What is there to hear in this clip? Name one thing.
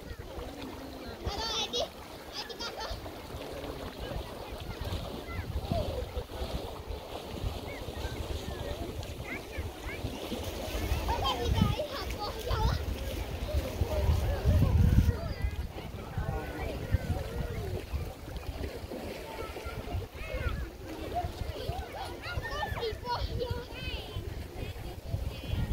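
Small waves lap at a shore.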